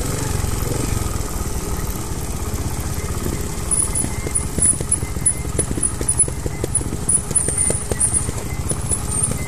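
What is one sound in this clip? A dirt bike engine drones steadily up close.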